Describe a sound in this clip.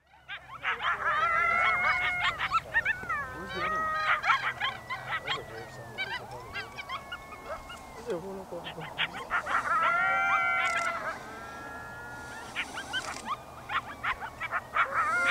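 Coyotes howl and yip in the distance.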